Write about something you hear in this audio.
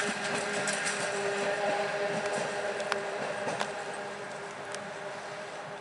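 Train wheels click and squeal on the rails.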